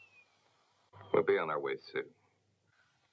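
A man speaks briefly in a low voice.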